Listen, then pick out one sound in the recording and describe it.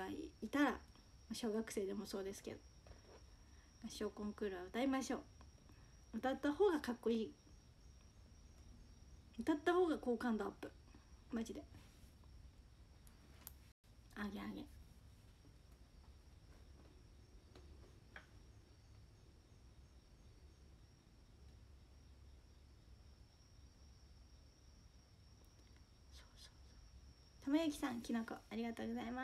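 A young woman talks with animation, close to a microphone, with pauses.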